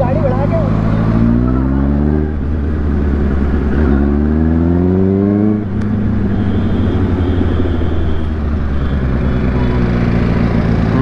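A motorcycle engine accelerates, rising in pitch through the gears.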